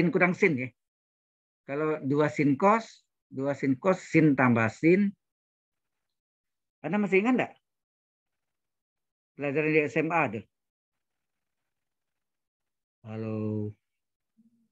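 A man speaks calmly in short phrases over an online call.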